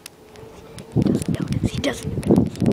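A young boy laughs loudly close to the microphone.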